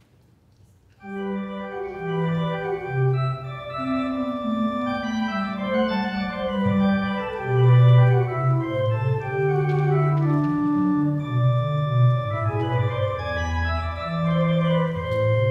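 A pipe organ plays a lively, flowing piece.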